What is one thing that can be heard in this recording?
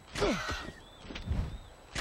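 Hands climb a wooden ladder.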